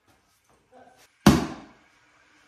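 A lid pops off a container with a sharp snap.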